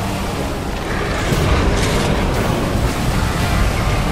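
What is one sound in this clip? A huge beast growls and roars deeply.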